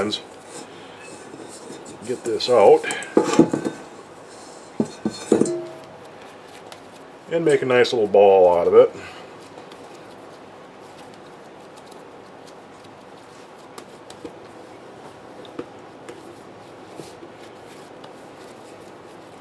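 Hands knead and slap soft dough.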